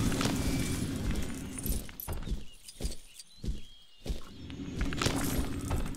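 Small coins chime and tinkle as they are collected.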